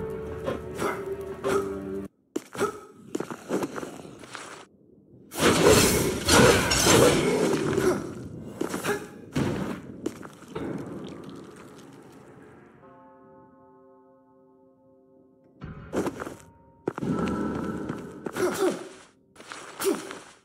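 Sword slashes and hits land with sharp clashing impacts.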